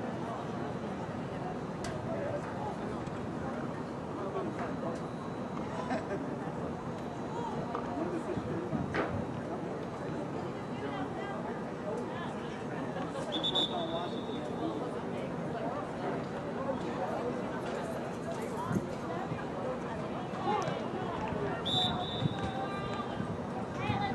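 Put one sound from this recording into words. Players call out to each other across an open field outdoors.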